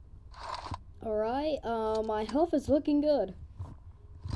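A young child speaks in a high voice close to a microphone.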